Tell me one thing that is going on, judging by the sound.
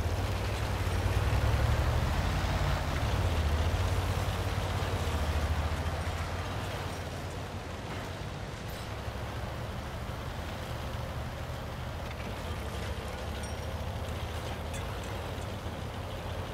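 A tank engine rumbles steadily as the tank drives.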